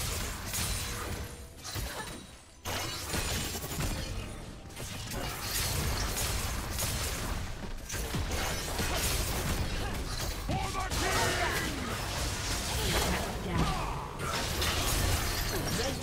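Game combat effects crackle, whoosh and clash rapidly.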